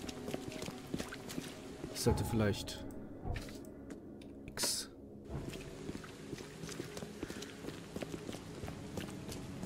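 Footsteps tap steadily on cobblestones.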